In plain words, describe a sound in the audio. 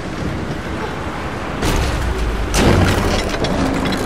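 A heavy crate clanks and creaks as it is hoisted on chains.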